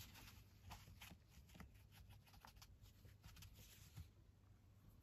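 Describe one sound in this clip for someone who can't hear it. A paper towel dabs and rustles against paper.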